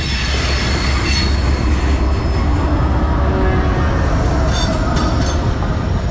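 Diesel locomotives rumble loudly as they pass close by.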